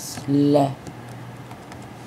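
A finger taps on a touchscreen.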